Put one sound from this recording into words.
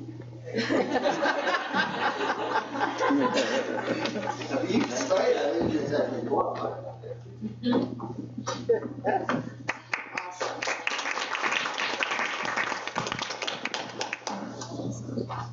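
A group of men and women recite together in unison in a large room.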